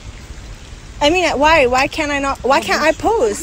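A young woman talks playfully and close by.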